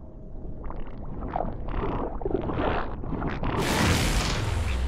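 A cartoon boy strains and lets out a long, loud fart.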